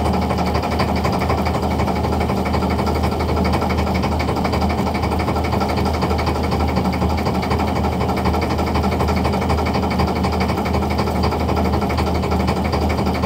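A fishing net rustles as it is pulled into a basket.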